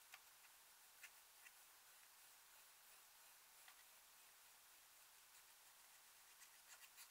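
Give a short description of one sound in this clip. A metal tool taps and clicks against a plastic case.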